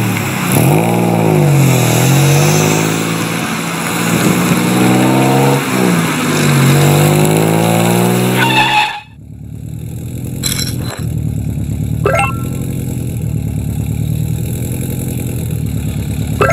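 A car engine revs up and down, then settles into a steady low hum.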